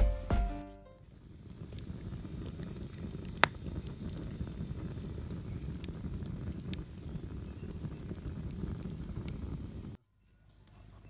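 A wood fire crackles and hisses.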